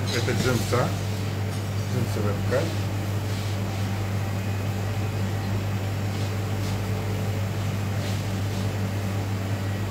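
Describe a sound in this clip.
A steady low machine hum runs throughout.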